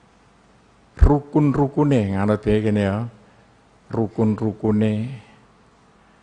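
An elderly man recites in a chanting voice through a microphone.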